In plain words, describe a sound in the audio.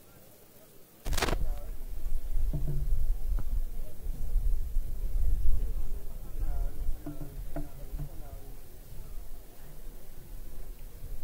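A crowd of men and women murmurs and chatters nearby outdoors.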